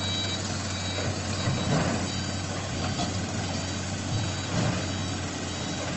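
Dirt and rocks tumble from an excavator bucket onto a pile.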